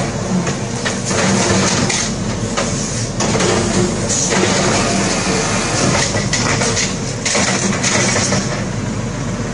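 A garbage bin clatters and bangs as it is emptied.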